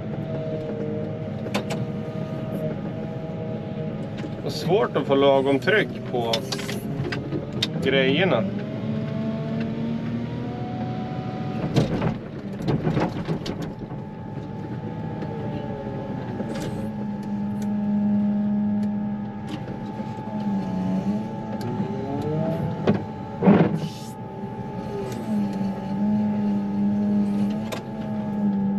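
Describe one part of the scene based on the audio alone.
A plow blade scrapes over snow and ice.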